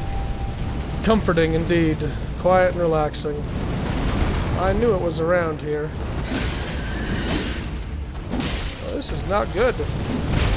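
A large creature roars and shrieks.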